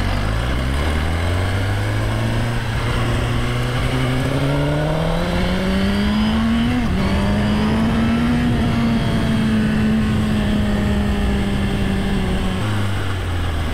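A motorcycle engine revs up, rising in pitch, then drops sharply as it shifts and hums steadily.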